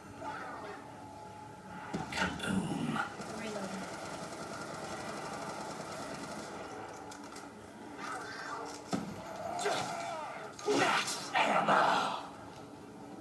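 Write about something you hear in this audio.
Rapid gunfire from a video game bursts through a television speaker.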